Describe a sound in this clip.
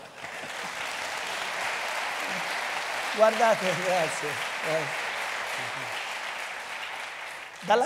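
An audience laughs and murmurs.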